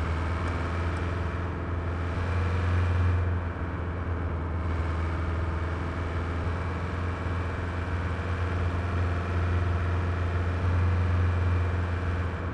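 Tyres roll over asphalt.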